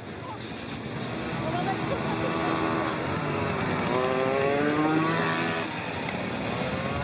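A small motor engine revs up and down close by.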